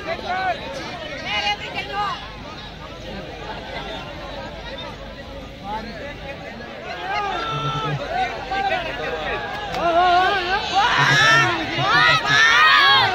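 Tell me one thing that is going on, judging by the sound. Several men talk and shout excitedly nearby.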